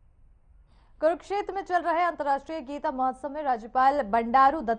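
A young woman reads out the news in a clear, steady voice.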